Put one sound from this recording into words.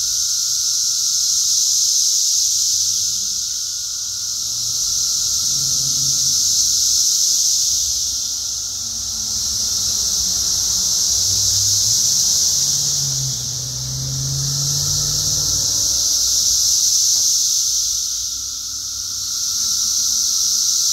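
Leaves rustle softly in a light breeze.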